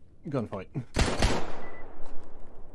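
A pistol fires a single loud shot that echoes and fades.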